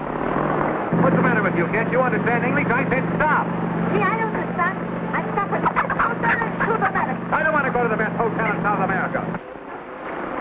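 A motorcycle engine rumbles steadily.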